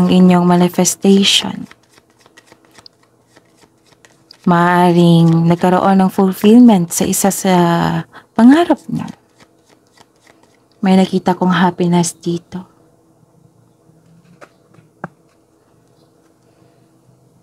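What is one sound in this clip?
A deck of playing cards shuffles softly.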